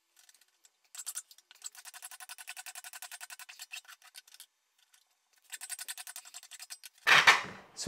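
A file rasps back and forth on a metal rod.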